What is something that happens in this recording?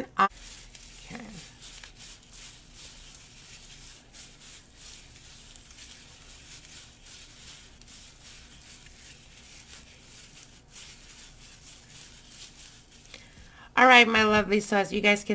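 Gloved hands crumble dry spices with soft rustling and crackling.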